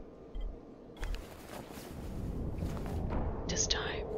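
A rustling whoosh sounds as an outfit changes.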